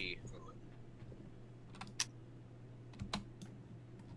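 A pistol clicks and knocks against a wooden table as it is handled.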